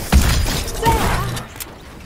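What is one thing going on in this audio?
A gun fires a few shots.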